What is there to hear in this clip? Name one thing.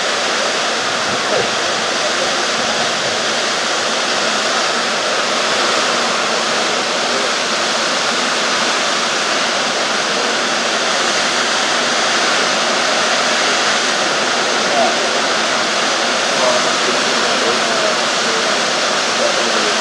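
A waterfall roars steadily, crashing into a pool below.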